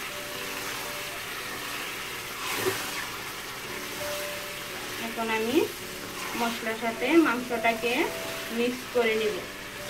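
A wooden spatula scrapes and stirs food in a pot.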